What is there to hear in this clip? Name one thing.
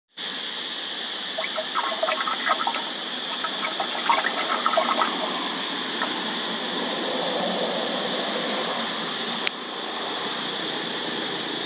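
A stick scrapes and knocks against the inside of a hollow in tree bark.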